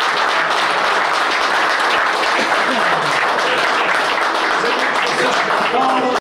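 A crowd applauds loudly in a room.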